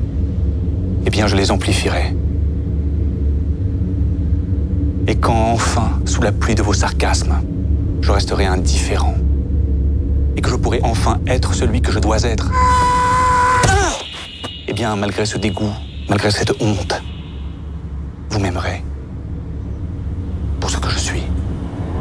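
A man speaks in a low, calm voice close by.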